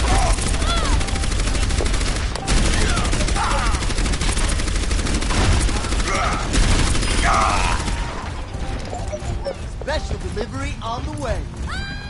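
Electric crackling buzzes from an energy shield.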